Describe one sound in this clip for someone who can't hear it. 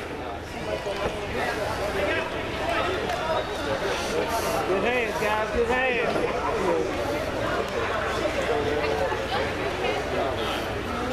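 Boys and men chatter and call out across a large echoing indoor hall.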